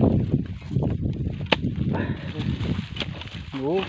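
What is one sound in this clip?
A hoe chops into dry soil.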